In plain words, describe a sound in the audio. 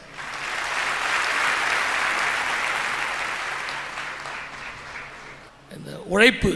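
A crowd applauds loudly in a large hall.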